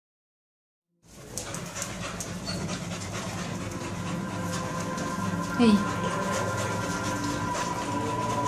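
Dogs shuffle and scratch about on straw.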